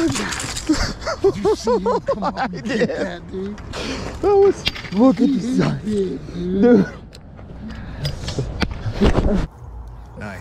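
A man talks with excitement close by.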